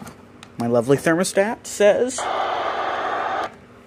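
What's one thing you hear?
A finger clicks buttons on a small device.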